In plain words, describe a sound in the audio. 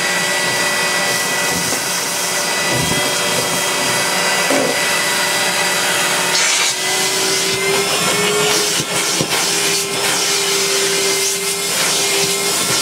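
A vacuum hose sucks up dust and fluff from a carpet.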